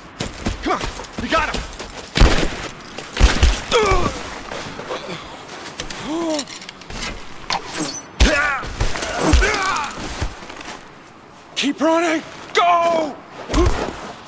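A man shouts urgently, close by.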